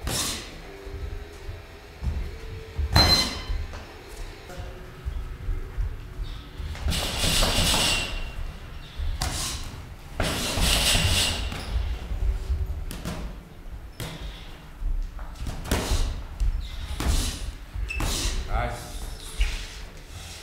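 Boxing gloves thud against each other in quick bursts.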